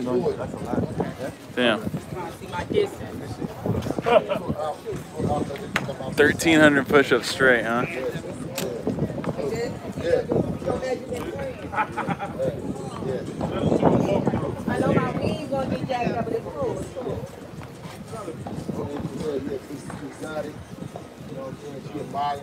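Men talk with animation close by, outdoors.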